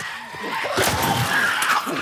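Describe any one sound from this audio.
A pistol fires a sharp shot.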